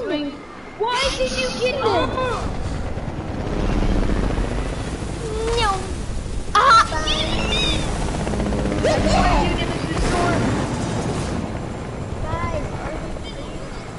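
A helicopter's rotor thumps and whirs close by.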